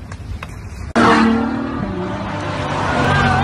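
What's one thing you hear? A car engine roars loudly as a sports car speeds past.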